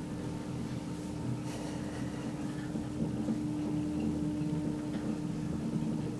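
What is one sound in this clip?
An elevator hums steadily as it travels.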